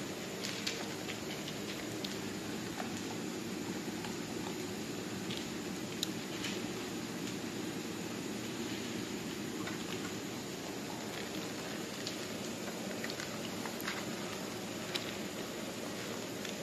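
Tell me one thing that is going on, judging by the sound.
Kibble rattles against a plastic bowl as dogs nose through it.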